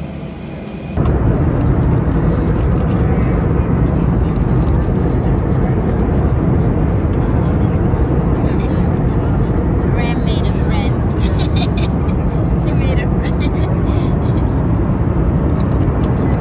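A jet airliner's engines drone steadily in the cabin.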